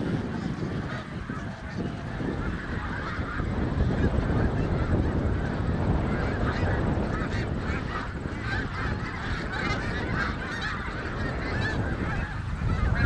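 A large flock of geese honks and calls overhead.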